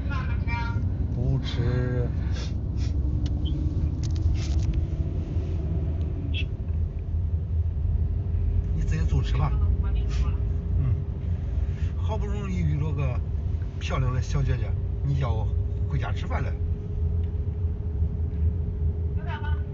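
A car engine hums steadily in the background.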